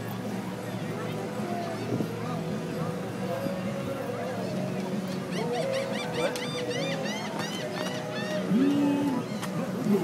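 Inflatable plastic squeaks as it is hugged and squeezed.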